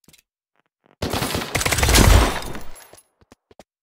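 A gun fires a loud burst of shots.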